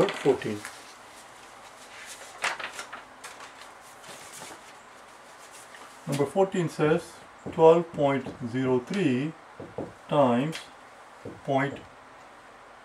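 A man speaks calmly and clearly close by.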